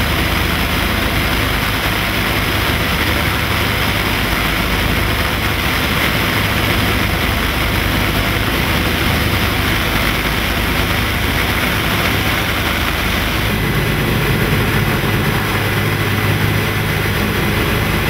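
The twin radial piston engines of a B-25 bomber drone in flight, heard from inside the cabin.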